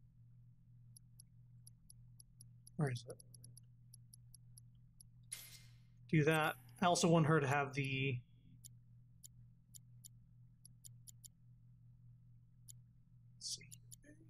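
Soft menu clicks tick in quick, short runs as selections change.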